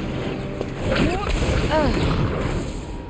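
A heavy blow lands with a crunch.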